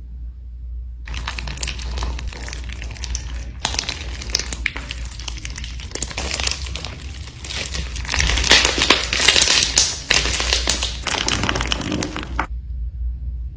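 Crunchy slime full of beads crackles and pops as hands squeeze and stretch it.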